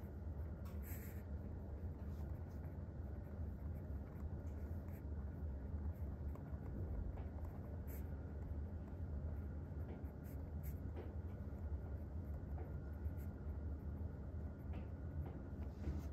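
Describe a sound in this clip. A pen scratches softly across paper.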